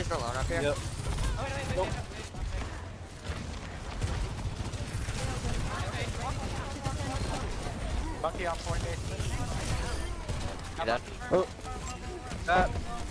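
Rapid gunfire rattles close by.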